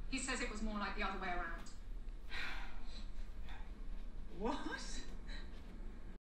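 A young woman speaks close by, with animation.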